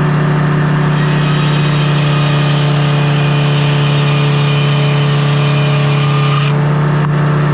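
A large circular saw whines as it cuts through a log.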